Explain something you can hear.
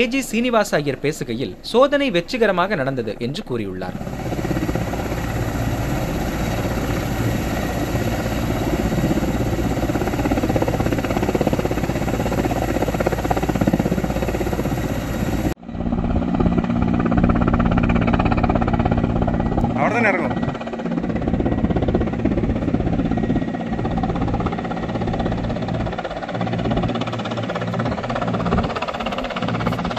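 A helicopter's rotor thuds and its engine roars steadily nearby.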